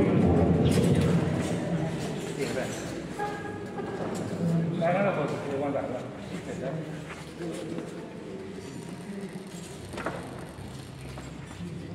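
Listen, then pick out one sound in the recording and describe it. A woman sings in a large echoing hall.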